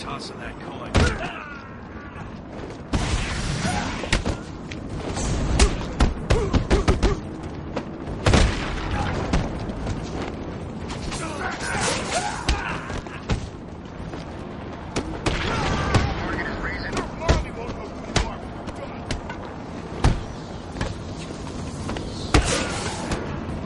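Men grunt and cry out as they are hit.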